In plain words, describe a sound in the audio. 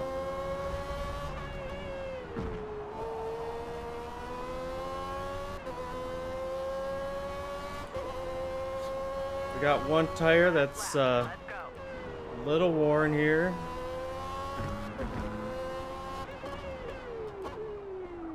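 A racing car engine whines at a high pitch, rising as it speeds up and dropping when it slows.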